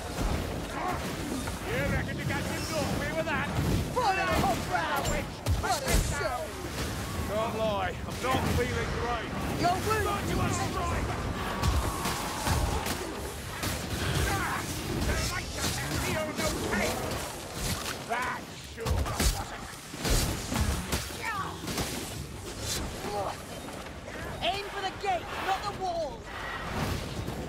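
Weapons hack and slash into enemies with heavy thuds.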